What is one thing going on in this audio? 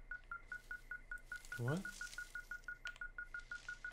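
Leafy branches rustle as a hand pushes through them.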